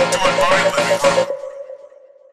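A man speaks loudly into a microphone in an echoing hall.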